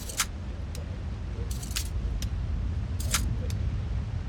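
A lock pick clicks and scrapes inside a metal lock.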